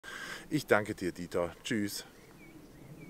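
A man speaks briefly and close by.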